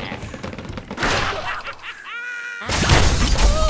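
A bird is flung from a slingshot with a whoosh.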